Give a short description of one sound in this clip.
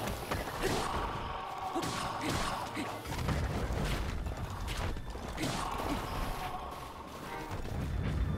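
Bones clatter apart as skeletons collapse.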